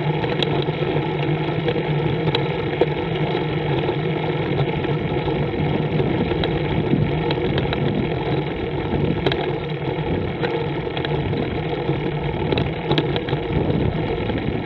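Tyres roll steadily over a rough road.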